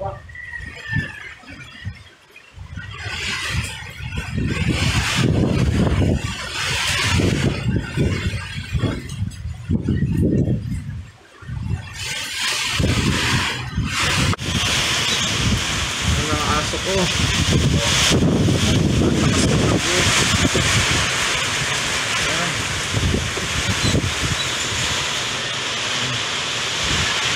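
Strong wind gusts and rumbles outdoors.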